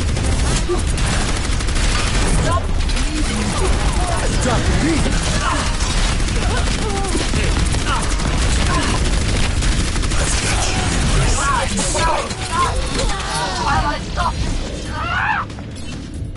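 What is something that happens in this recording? Rapid gunfire and energy blasts crackle loudly.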